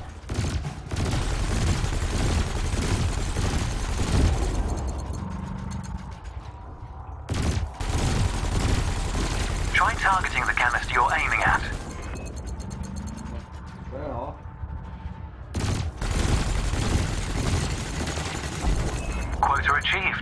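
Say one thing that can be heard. Laser fire crackles and rumbles in a spaceship game.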